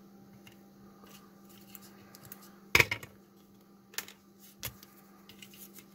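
A circuit board clicks and knocks as it is turned in a holder.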